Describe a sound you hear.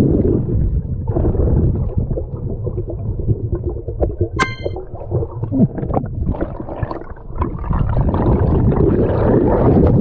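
Water swirls and bubbles in a low, muffled rumble underwater.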